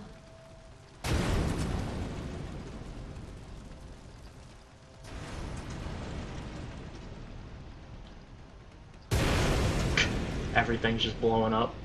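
Loud explosions boom and rumble, each one slowly dying away.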